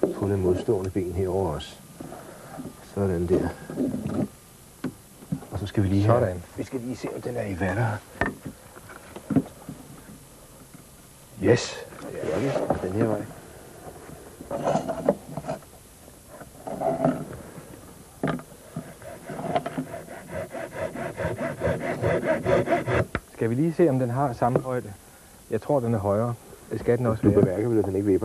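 A man answers in a calm voice nearby.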